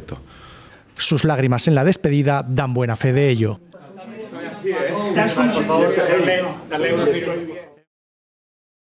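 A middle-aged man speaks emotionally into a microphone, his voice breaking.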